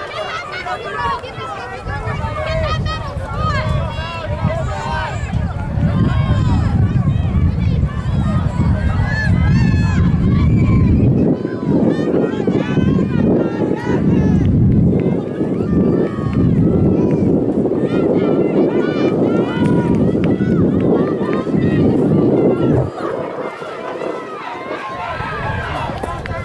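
A crowd of spectators chatters nearby outdoors.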